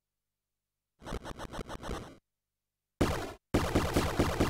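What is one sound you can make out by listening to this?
Sword slashes and hits ring out in a video game fight.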